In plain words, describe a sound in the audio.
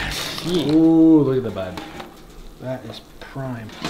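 A pizza scrapes as it slides off a metal rack onto a paper plate.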